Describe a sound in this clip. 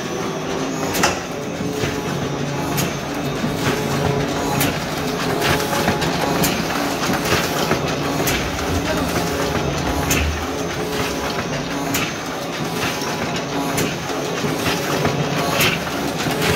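Paper sheets feed through a printing press with rhythmic clicks.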